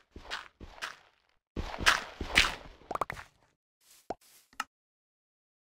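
Blocks crunch and crack as they are dug away.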